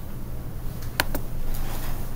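A computer mouse clicks sharply.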